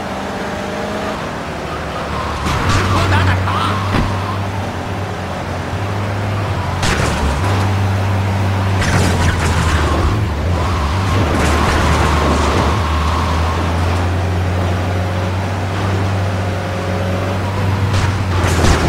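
A car engine roars steadily.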